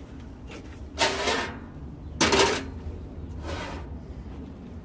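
A metal press thumps loudly several times.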